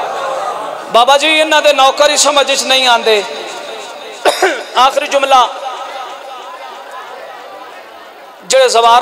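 A man speaks passionately into a microphone, his voice booming through loudspeakers with echo.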